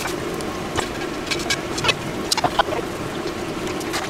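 A frying pan is set down on a stove with a clunk.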